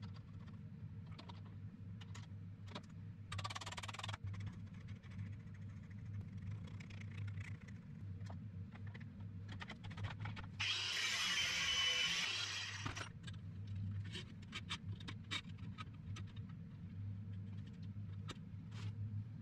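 Metal parts click and clink as they are handled.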